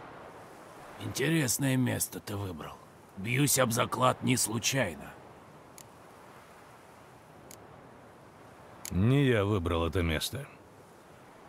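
A man speaks calmly in a low, gravelly voice.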